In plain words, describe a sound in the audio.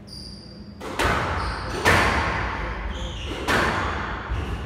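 A squash ball smacks hard against the walls, ringing out in an echoing court.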